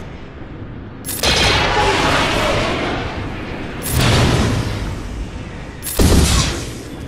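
Spaceship laser blasts and explosions boom out in loud bursts.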